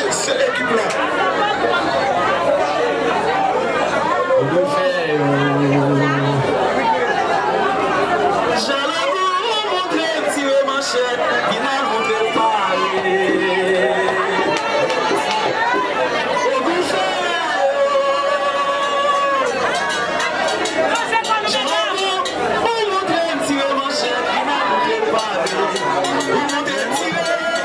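A crowd of women sings together loudly, with many voices rising and falling.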